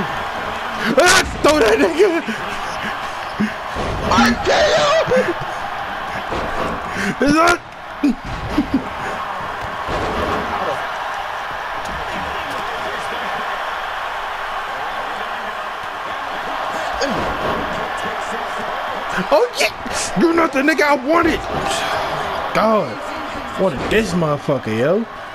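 Heavy blows and slams thud on a wrestling ring mat.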